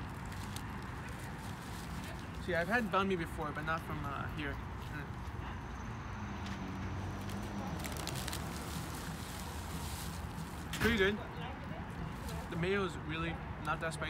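Paper wrapping rustles and crinkles.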